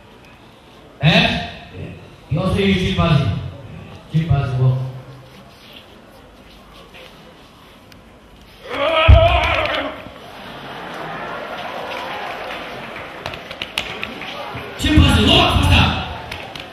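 A man groans and cries out loudly into a microphone close by.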